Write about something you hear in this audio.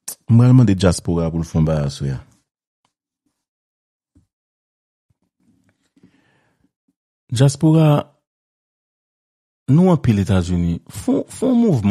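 A man speaks with animation over a headset microphone, in pauses.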